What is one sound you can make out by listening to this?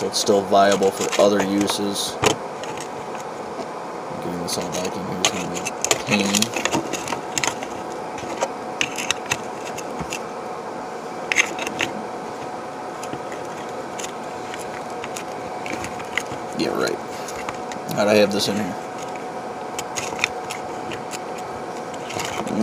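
Small objects clink and rattle against a metal tin.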